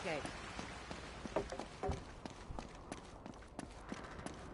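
Footsteps tap on stone pavement.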